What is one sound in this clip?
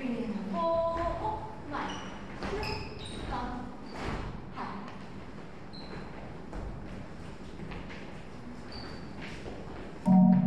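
Sneakers thud and squeak on a wooden floor.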